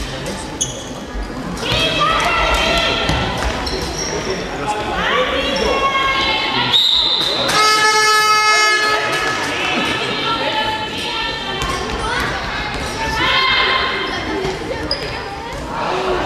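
Young girls shout and call out to each other.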